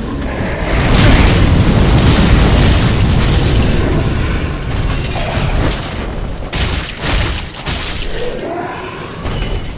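Metal weapons clash and strike.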